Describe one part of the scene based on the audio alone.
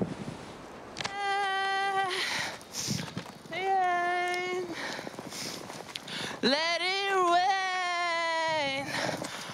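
A young woman sings loudly and shrilly close by, outdoors.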